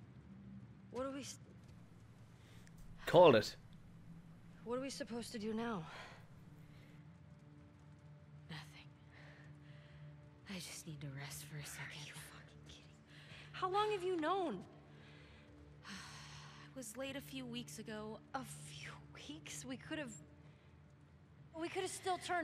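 A young woman speaks tensely and close by.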